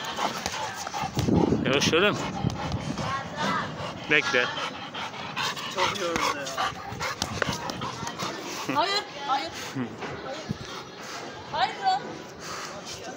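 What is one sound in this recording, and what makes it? A young boy talks excitedly nearby.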